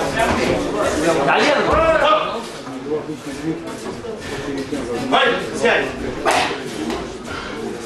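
Spectators shout in an echoing hall.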